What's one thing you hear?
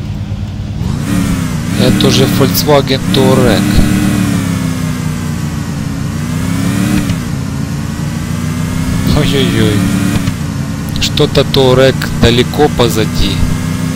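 A car engine drones and revs steadily, shifting up through the gears.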